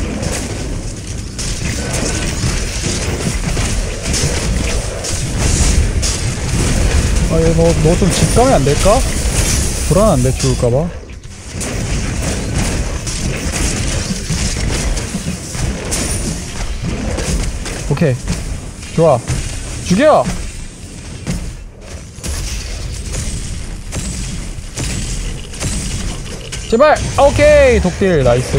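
Video game weapons fire and blast in a fight.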